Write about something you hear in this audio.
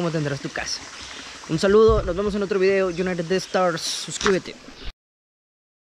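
A young man talks animatedly and close up, outdoors.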